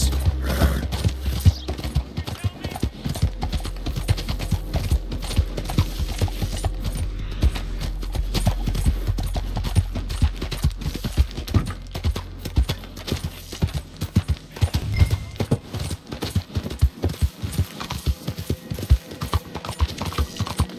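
Horse hooves clop quickly on a dirt road.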